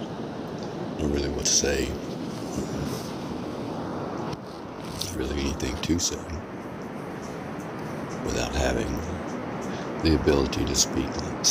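A man speaks quietly and close by in short bursts.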